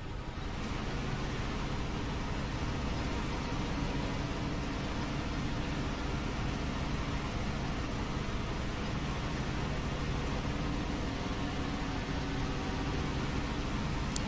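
A heavy truck engine rumbles steadily as the truck drives slowly.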